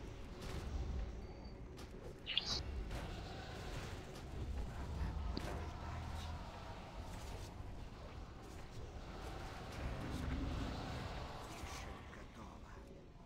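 Fiery spells burst and crackle in a fight.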